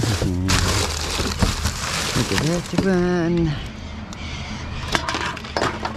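Plastic bottles clatter and clink.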